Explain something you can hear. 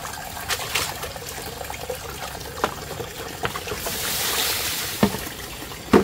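Water drains and splashes back into a basin.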